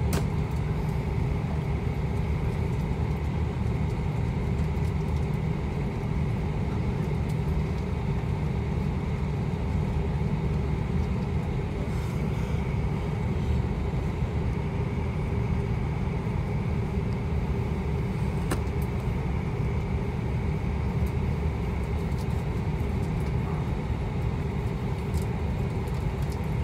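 Jet engines hum and roar steadily as an airliner taxis, heard from inside the cabin.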